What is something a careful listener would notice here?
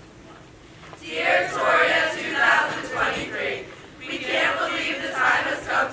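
A large choir of young voices sings loudly together in a hall.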